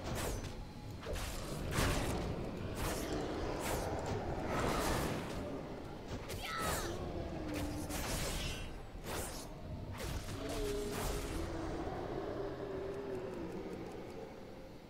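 Spell effects and weapon hits crack and whoosh in quick bursts.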